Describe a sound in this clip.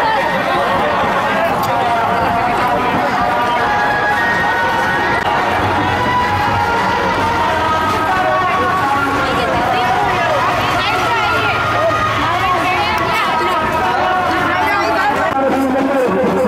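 A crowd of men and women chatter and shout close by.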